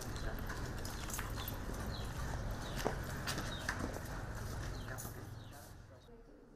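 Footsteps shuffle on hard ground outdoors.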